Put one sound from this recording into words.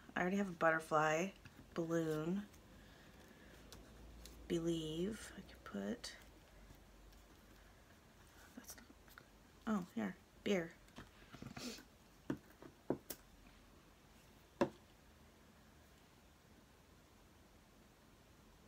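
Paper rustles softly under pressing hands.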